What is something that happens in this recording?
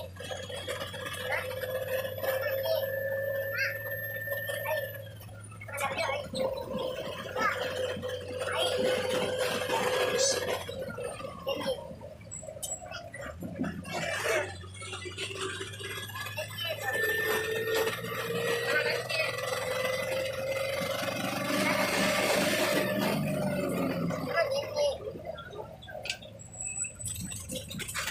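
A motorcycle engine hums steadily, rising and falling in pitch as the rider takes the bends.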